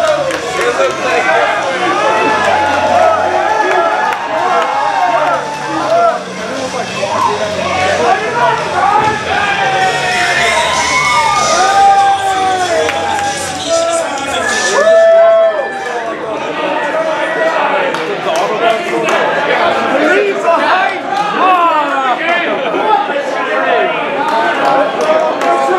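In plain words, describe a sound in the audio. A crowd of men and women shouts and cheers loudly throughout, in an echoing hall.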